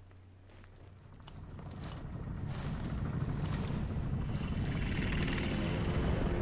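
A helicopter roars overhead, growing louder.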